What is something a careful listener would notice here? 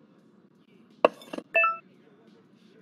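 A clatter and a short electronic chime sound as a piece of lab equipment is set down.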